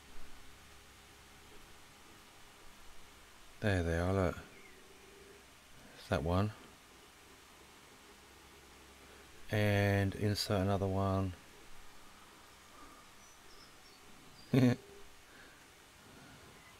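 A stylus taps lightly on a glass touchscreen.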